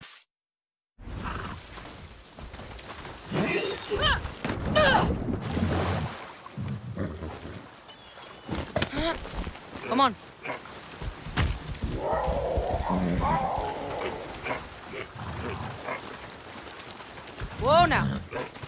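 A horse wades and splashes through shallow water.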